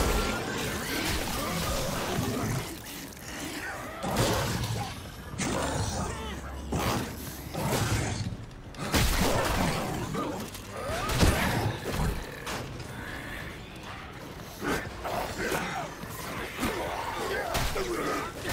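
Monsters growl and snarl.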